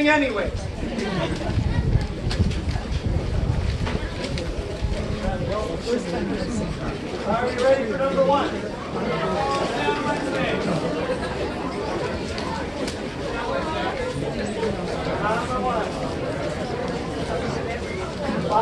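A brass band plays a tune outdoors.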